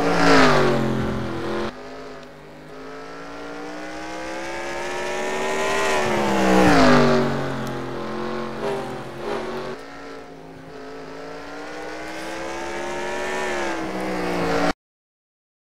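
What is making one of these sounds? A race car engine roars, its pitch climbing steadily and dropping sharply with each gear change.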